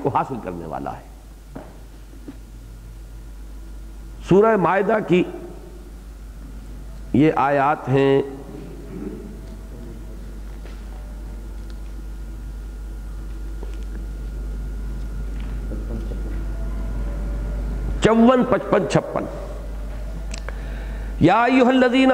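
An elderly man speaks slowly through a microphone, with pauses.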